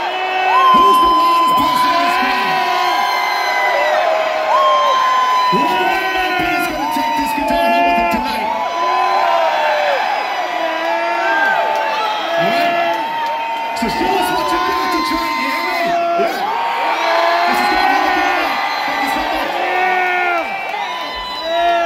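A man sings loudly through loudspeakers in a large echoing hall.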